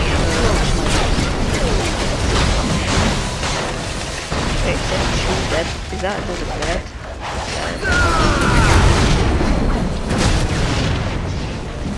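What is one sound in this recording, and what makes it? Energy beams fire with a roaring whoosh.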